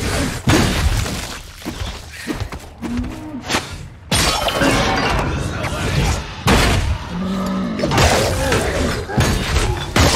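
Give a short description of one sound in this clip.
Magic spells crackle and burst in combat.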